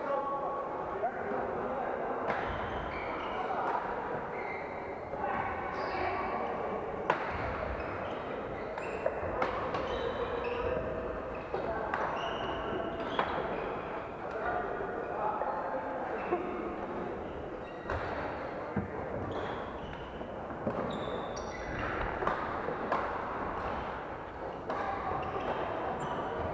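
Shoes squeak on a wooden court floor.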